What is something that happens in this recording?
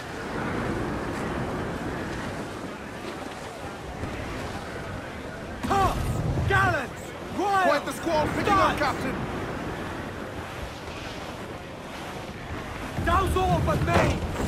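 Sea waves wash against a ship's hull.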